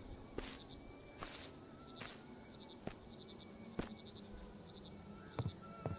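Footsteps thud slowly on wooden boards.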